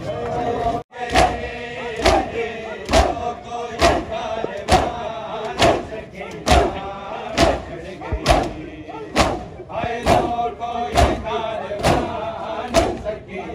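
Men beat their chests with hands in a steady, loud rhythm.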